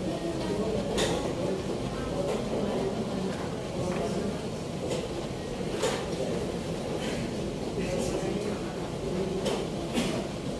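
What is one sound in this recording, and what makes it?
Chess pieces click onto a board.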